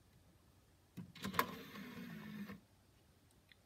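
A disc tray whirs open.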